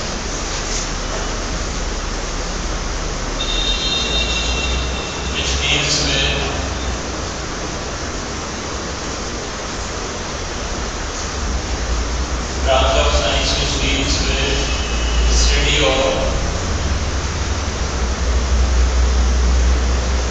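A whiteboard eraser rubs across a board.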